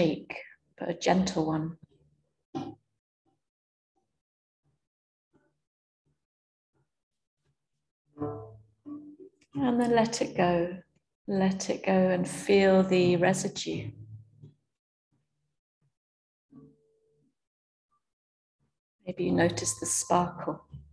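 A young woman speaks calmly, in short phrases with long pauses.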